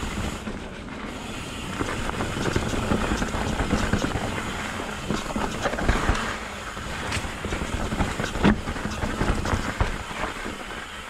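A bicycle frame clatters and knocks over bumps.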